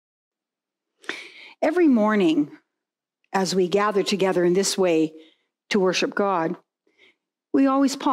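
An elderly woman speaks calmly and warmly into a microphone.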